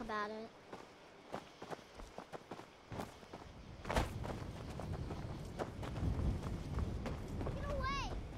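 Footsteps tread on stone and wooden boards.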